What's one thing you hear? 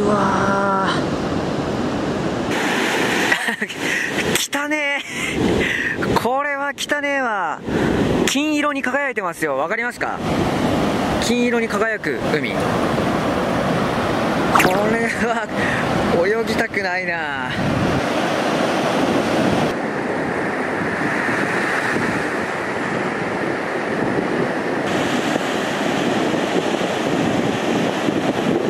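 Waves break and wash up onto the shore.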